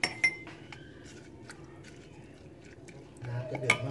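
A ladle stirs liquid in a pot.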